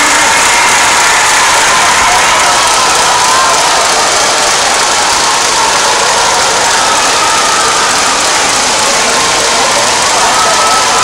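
A large crowd cheers and chatters loudly in a big echoing hall.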